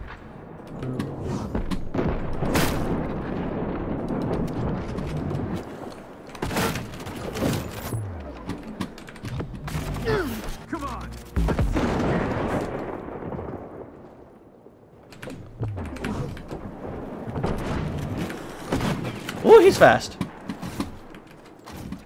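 Gunshots bang in sharp bursts.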